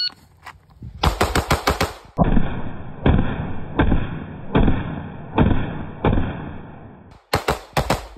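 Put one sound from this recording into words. Gunshots fire in quick bursts, loud and close, outdoors.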